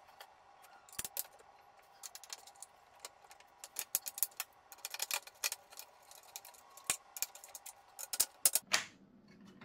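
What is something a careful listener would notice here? A screwdriver scrapes and clicks against metal parts.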